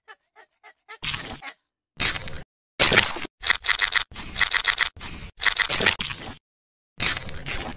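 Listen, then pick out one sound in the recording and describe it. A stick squelches through wet mud.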